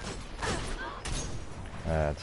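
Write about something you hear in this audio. A gun fires in quick shots.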